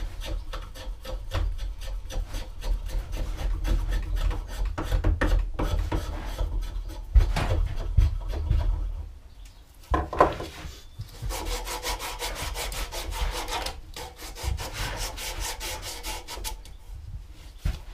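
A chisel shaves and scrapes wood in short strokes.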